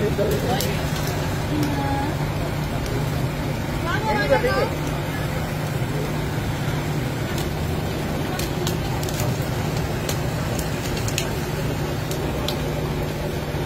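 Batter sizzles steadily on a hot griddle.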